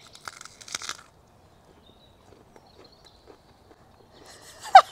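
A man chews noisily.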